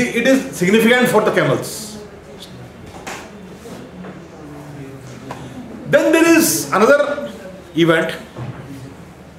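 A man lectures calmly, heard through a microphone.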